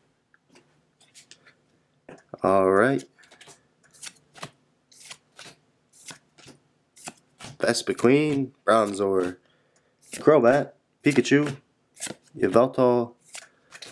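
Playing cards slide and click against each other as they are flipped one by one.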